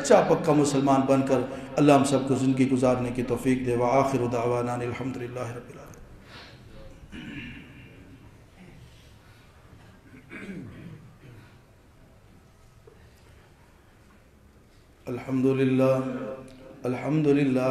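A man chants in a loud, drawn-out voice through a microphone and loudspeaker, pausing between phrases.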